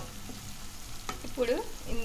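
A wooden spatula stirs food in a pan.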